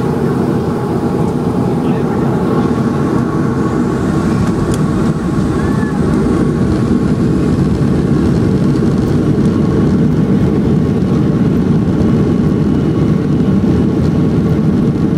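Jet engines roar steadily from inside an airliner cabin as it taxis.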